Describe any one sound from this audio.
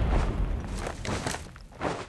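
A vehicle burns with a roaring crackle.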